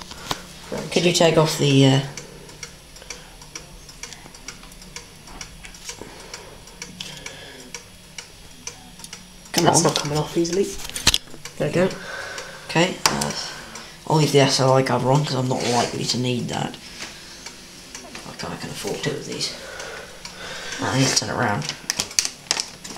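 Metal computer parts clatter and click as hands handle them.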